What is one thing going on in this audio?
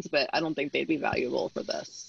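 Another woman speaks with animation over an online call.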